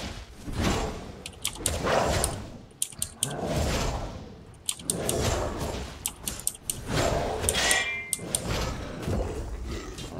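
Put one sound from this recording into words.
Weapons strike and clash in a fight with a large beast.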